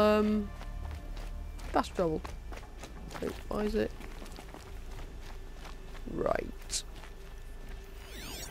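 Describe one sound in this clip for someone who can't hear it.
Footsteps crunch softly over ground.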